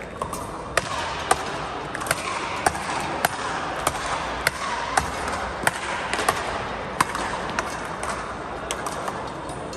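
A murmur of spectators echoes through a large indoor hall.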